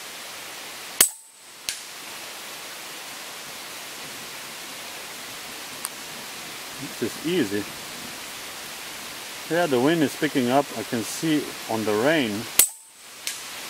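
An air rifle fires twice with a sharp crack.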